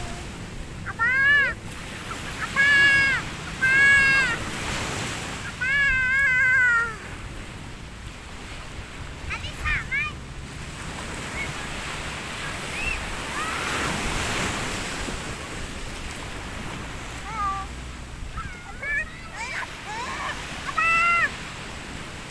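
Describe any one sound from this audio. A young child squeals and shouts excitedly close by.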